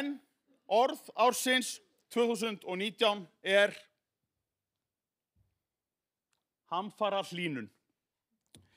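A middle-aged man speaks calmly through a microphone in a large hall, pausing between phrases.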